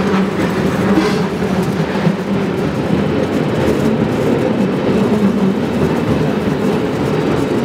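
Tyres rumble on a paved road.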